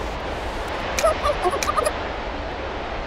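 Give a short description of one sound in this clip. A cartoon character babbles in quick, high chirps.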